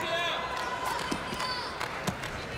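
Players' shoes squeak on the court.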